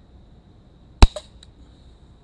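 A rifle fires a single loud, sharp shot close by.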